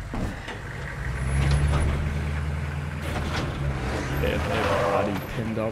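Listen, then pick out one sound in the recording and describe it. A truck engine rumbles low as the truck drives off.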